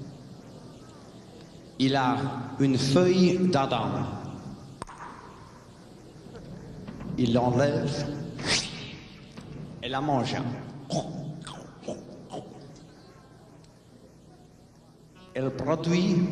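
A drummer plays a drum kit.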